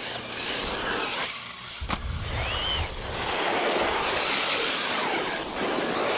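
Small tyres rush over rough pavement.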